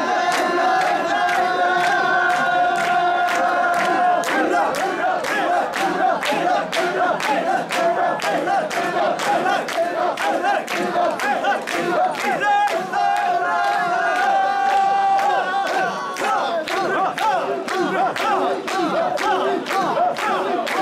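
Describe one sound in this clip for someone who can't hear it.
A crowd of men chant loudly in rhythm close by.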